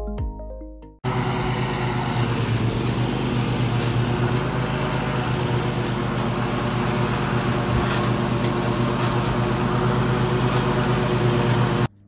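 A riding mower's engine hums steadily nearby.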